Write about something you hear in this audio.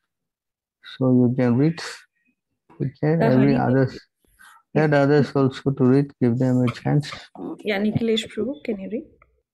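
An elderly man reads aloud calmly, heard through an online call.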